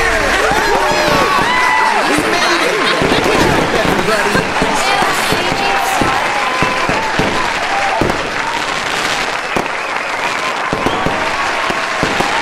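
Fireworks burst with loud bangs and crackles.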